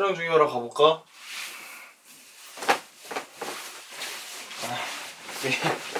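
Bedcovers rustle as a young man pushes them aside.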